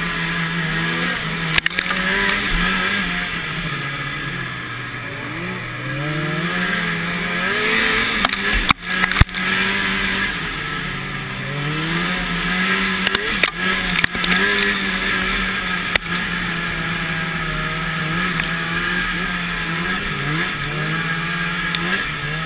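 A snowmobile engine drones close by, its pitch rising and falling with the throttle.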